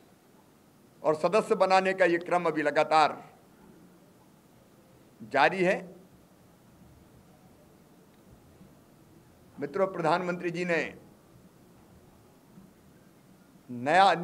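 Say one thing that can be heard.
A middle-aged man speaks into microphones with animation, in short bursts with pauses.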